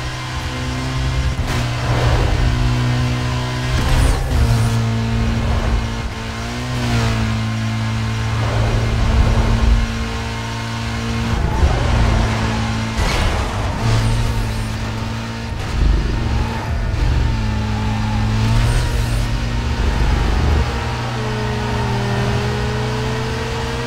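A racing car engine roars at high speed, shifting gears up and down.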